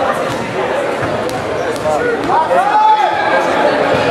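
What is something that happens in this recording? A basketball bounces on a hard wooden floor.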